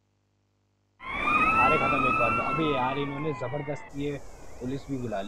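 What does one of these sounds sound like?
Police sirens wail.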